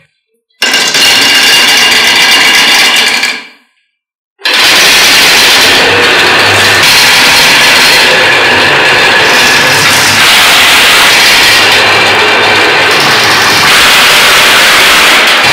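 Many glass marbles roll and clatter along wooden tracks.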